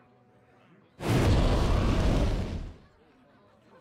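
A loud crashing game sound effect plays as one card strikes another.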